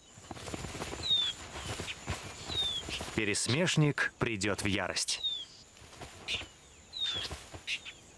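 A small bird chirps in short high calls.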